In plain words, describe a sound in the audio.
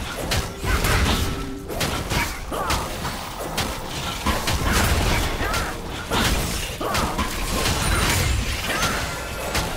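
Game spell effects burst and crackle in rapid bursts.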